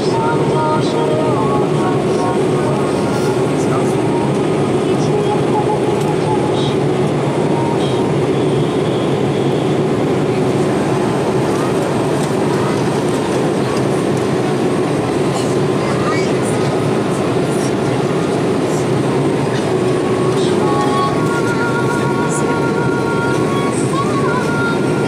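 A jet airliner's engines roar steadily, heard from inside the cabin.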